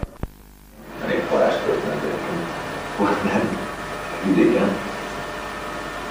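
A second man speaks up.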